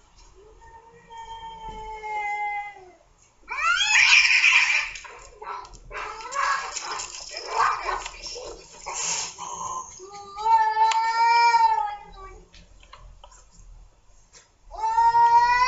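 Cats yowl and growl at each other in long drawn-out wails.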